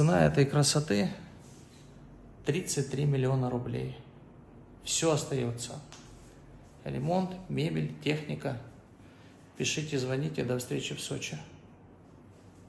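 A young man talks calmly and close up to the microphone.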